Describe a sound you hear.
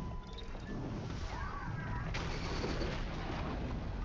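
A burst of flames roars.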